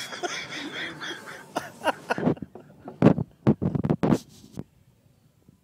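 A group of men laugh loudly close by.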